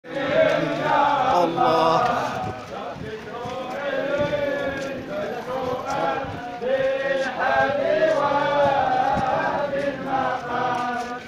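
A crowd of men chants together in unison.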